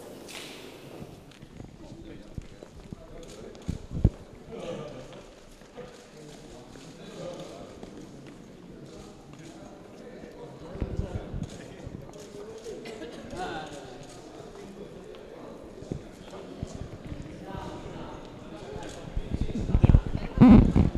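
Several men chat and greet each other nearby.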